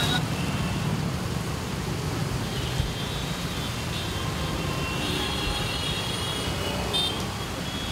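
Tyres hiss on wet tarmac.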